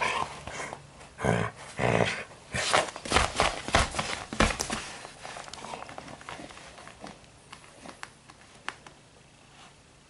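A dog chews and gnaws on a fabric toy.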